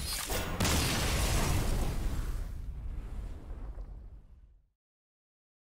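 A game's magic blast booms and crackles, then fades.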